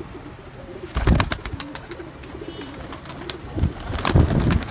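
Pigeons' wings flutter and flap in short bursts.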